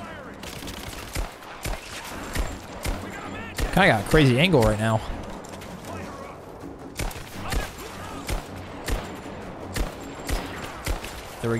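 A pistol fires repeated sharp shots.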